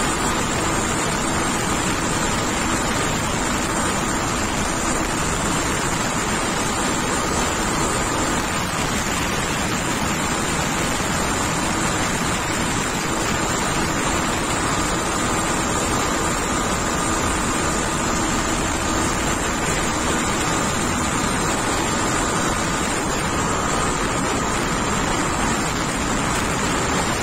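A motorcycle engine hums steadily at cruising speed.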